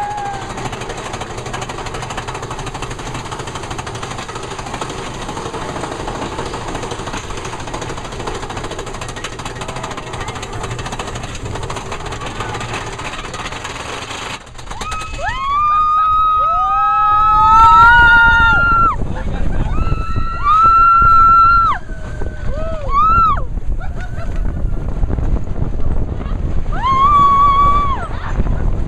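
A roller coaster rattles and rumbles along its track.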